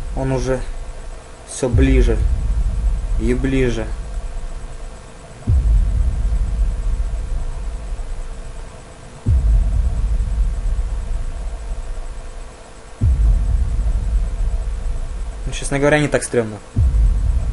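A young man talks close to a microphone in short bursts.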